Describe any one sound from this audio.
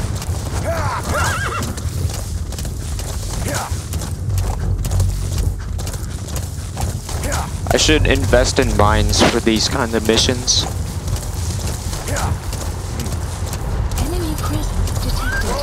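A horse's hooves thud steadily on dirt.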